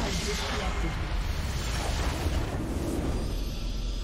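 A game's battle effects crackle and boom.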